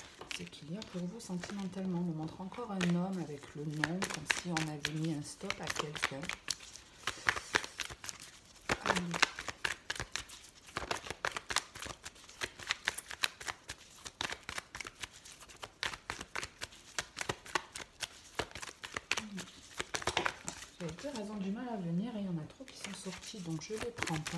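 Playing cards riffle and flick as a deck is shuffled by hand.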